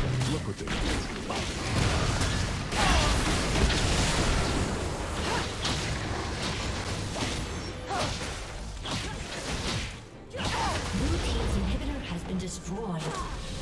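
Game spell effects whoosh, crackle and blast in quick bursts.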